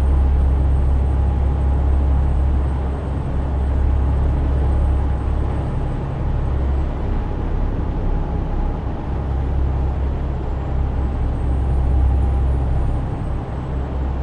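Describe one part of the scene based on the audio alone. Tyres roll on a road with a steady rushing noise.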